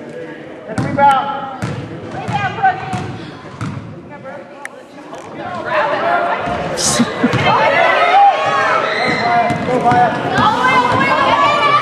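A basketball bounces on a hard gym floor.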